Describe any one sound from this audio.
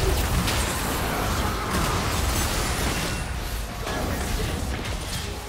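Fantasy battle sound effects crackle and whoosh as spells are cast.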